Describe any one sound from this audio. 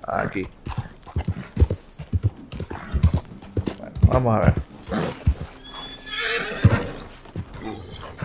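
Horse hooves thud on the ground at a steady gallop.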